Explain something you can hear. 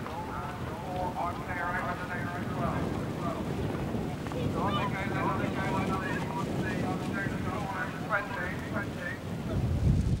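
Horses gallop across grass.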